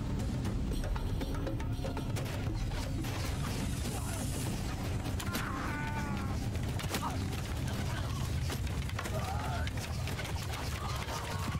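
Many horses' hooves thunder across the ground.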